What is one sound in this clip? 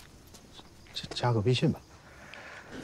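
A middle-aged man speaks briefly and warmly, close by.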